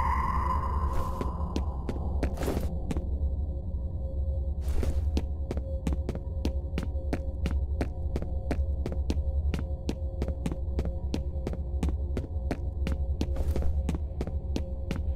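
Footsteps tap steadily on a hard floor in an echoing space.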